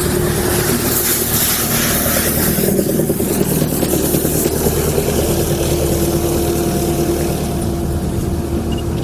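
A vehicle engine hums steadily as it passes close by.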